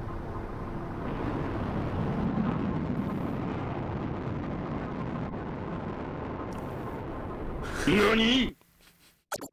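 A deep explosion rumbles and roars.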